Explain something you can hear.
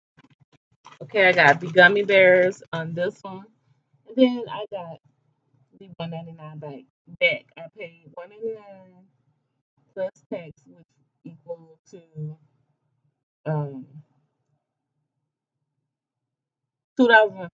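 A middle-aged woman talks with animation close to a microphone.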